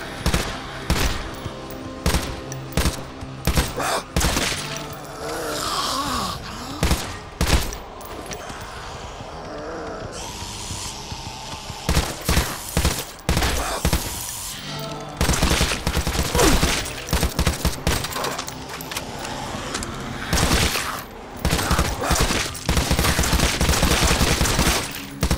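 Zombies growl and groan.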